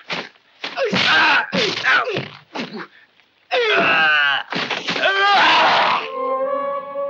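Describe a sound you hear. Men shout and grunt close by as they struggle.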